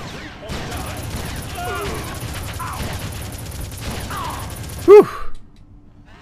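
Gunfire rattles rapidly and loudly.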